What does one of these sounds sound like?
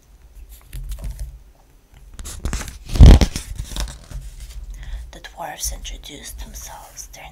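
Long fingernails tap and scratch on paper pages.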